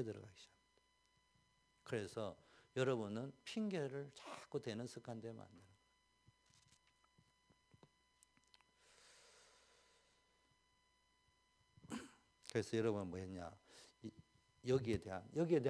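A middle-aged man speaks with animation into a microphone, pausing now and then.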